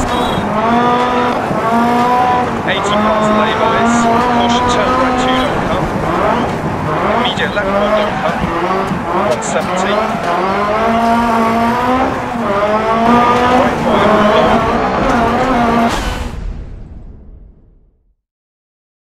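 A rally car engine revs hard, rising and falling in pitch as gears change.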